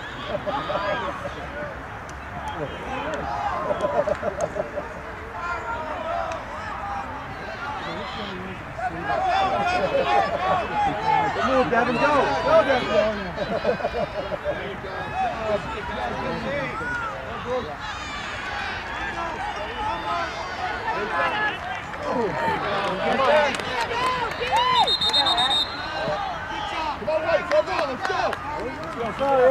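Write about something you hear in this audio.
A crowd of spectators and young players shout and call out across an open field outdoors.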